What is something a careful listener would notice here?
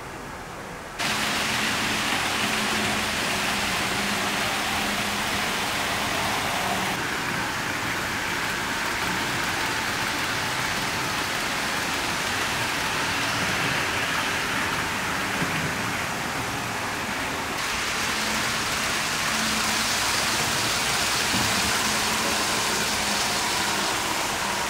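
Small model trains whir and clatter along their tracks.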